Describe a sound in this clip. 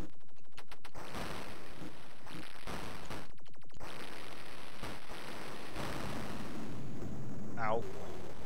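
Crunching, thudding smashes sound as a video game monster punches a building.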